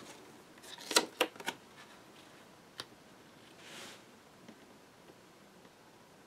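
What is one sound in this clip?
Paper rustles and slides as hands handle it.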